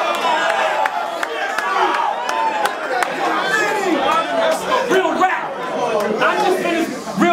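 A crowd cheers and shouts close by in a noisy room.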